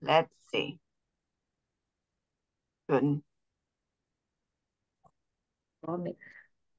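A woman speaks calmly in short phrases over an online call.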